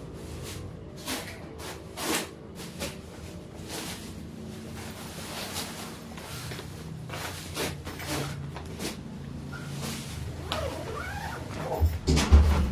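A soft bag rustles and thumps as it is handled.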